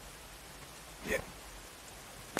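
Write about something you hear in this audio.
An arrow is shot from a bow and whooshes through the air.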